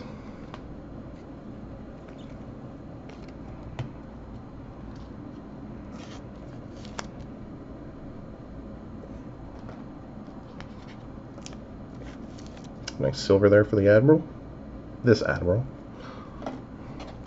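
Trading cards rustle and slide softly between fingers.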